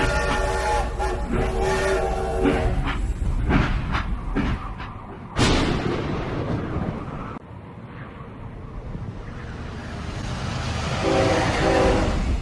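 A steam train whistle blows loudly.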